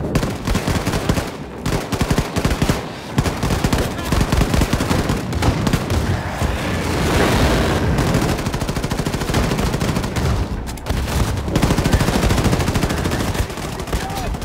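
Guns fire in rapid, loud bursts.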